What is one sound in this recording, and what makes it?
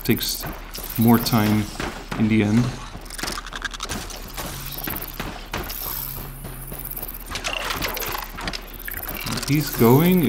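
A robotic beast lets out metallic growls.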